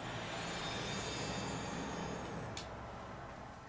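A shimmering, sparkling magical sound swells and fades away.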